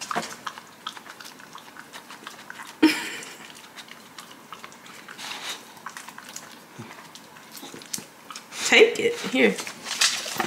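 A small dog gnaws and licks at a hard chew.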